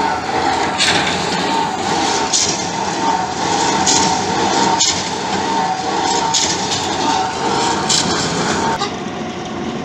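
A drilling rig's engine runs with a steady loud drone.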